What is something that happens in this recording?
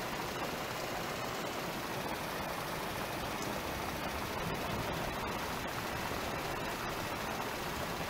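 Heavy rain drums steadily on a windscreen.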